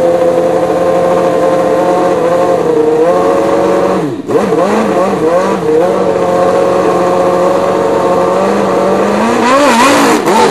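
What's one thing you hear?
A racing car engine idles loudly and revs.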